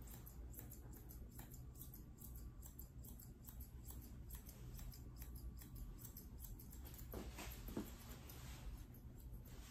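Grooming scissors snip through a poodle's curly coat.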